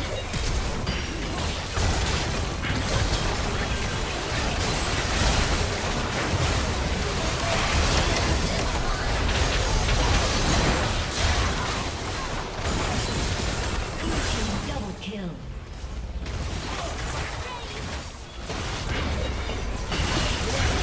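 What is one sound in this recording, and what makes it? Game spell effects crackle and boom in a busy battle.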